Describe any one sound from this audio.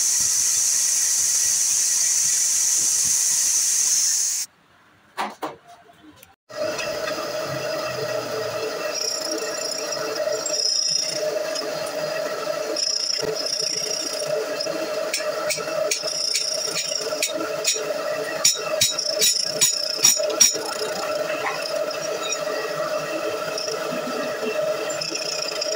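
A milling machine whines steadily as its cutter grinds into metal.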